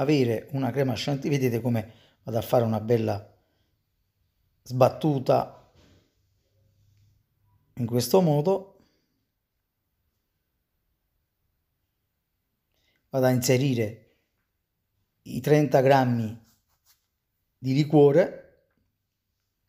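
A man speaks calmly and clearly into a close microphone, in short phrases with pauses.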